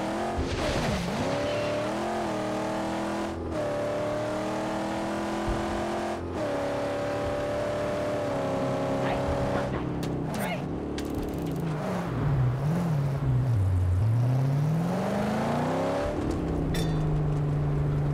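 A car engine roars and revs, its pitch shifting up and down.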